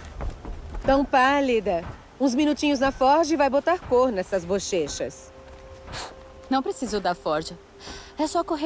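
A young woman speaks with animation, close up.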